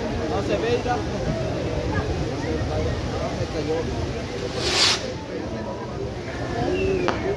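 Pyrotechnic fountains on a fireworks tower hiss and crackle outdoors.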